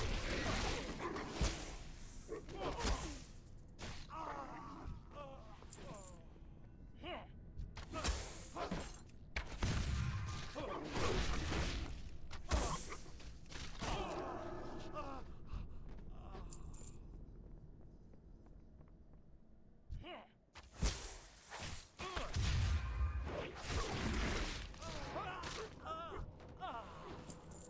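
Weapon strikes land in a video game fight.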